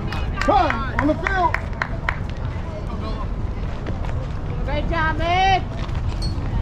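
Young players shout and call out loudly across an open field.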